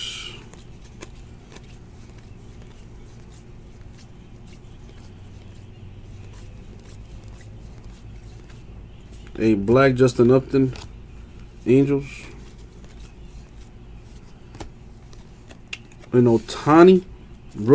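Trading cards slide and flick softly against each other in someone's hands.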